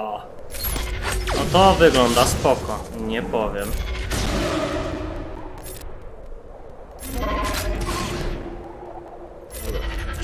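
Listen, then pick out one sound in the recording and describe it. Blasters fire in quick bursts of zapping shots.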